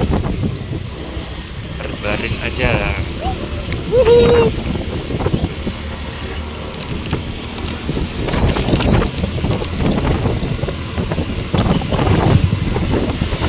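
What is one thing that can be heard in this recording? Motorcycles pass by with engines droning.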